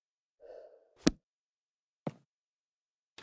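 Soft menu clicks sound a few times.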